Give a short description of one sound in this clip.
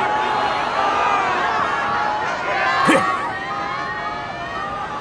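Children cheer and shout excitedly.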